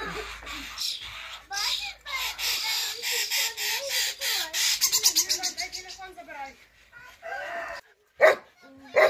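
A bird chirps rapidly at a nest box in a tree.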